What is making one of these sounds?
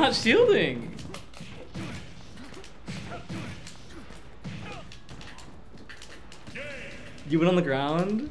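Video game fighting effects whoosh and thud.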